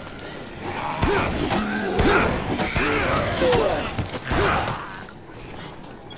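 Heavy blows thud and splatter into bodies.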